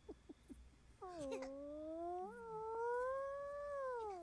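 A small animal lets out a long, high, wavering cry.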